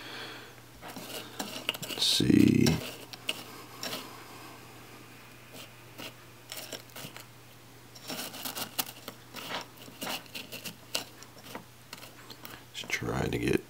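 Fingers crunch and rustle through a pile of crushed ice.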